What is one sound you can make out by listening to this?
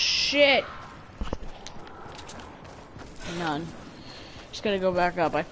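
Footsteps patter quickly on rock and grass.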